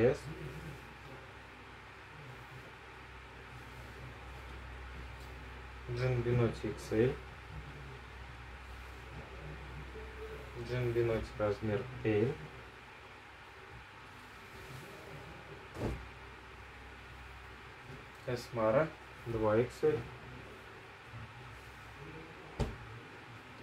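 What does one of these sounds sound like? Fabric rustles softly as clothes are handled and laid down.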